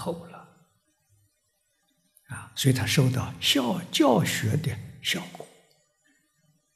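An elderly man speaks calmly into a microphone, with long pauses.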